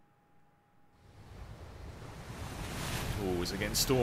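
Wind rushes through a sailing ship's sails, growing louder.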